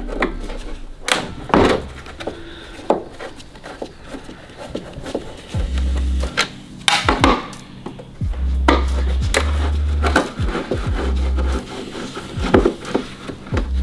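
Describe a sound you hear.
A tool knocks and scrapes against hard plastic.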